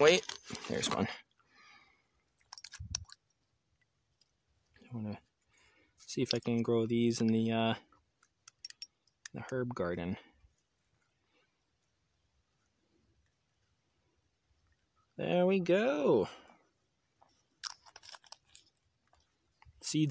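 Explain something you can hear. A small metal capsule clicks and rattles in fingers.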